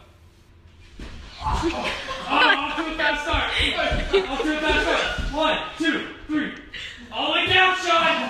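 Young men shout and cheer excitedly nearby.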